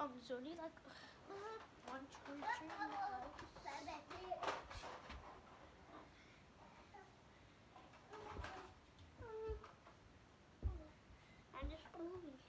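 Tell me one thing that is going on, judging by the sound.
A young child talks and squeals excitedly close by.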